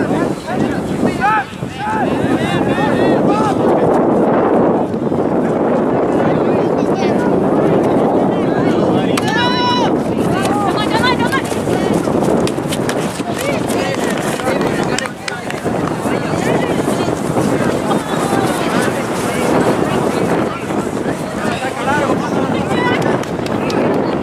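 Young players shout to each other across a field.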